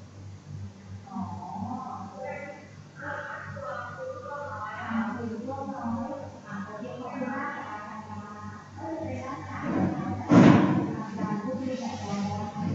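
Several children talk softly over an online call.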